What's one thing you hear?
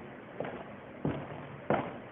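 Footsteps thud across a wooden floor in an echoing room.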